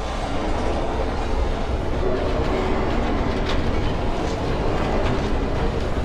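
A heavy vehicle's engine hums and rumbles steadily.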